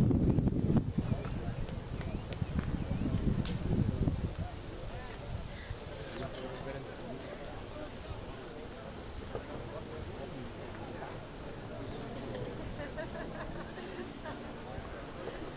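Young men shout to one another in the distance, outdoors.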